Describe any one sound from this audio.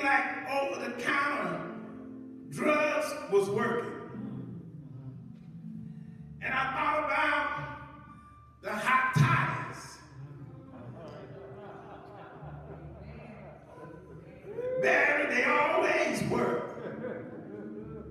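A man preaches through a microphone in bursts, his voice echoing in a large hall.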